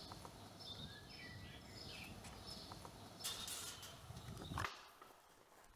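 Footsteps swish through long grass outdoors.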